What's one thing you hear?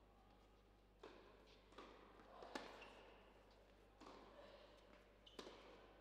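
Tennis balls are struck back and forth with sharp pops of the racket.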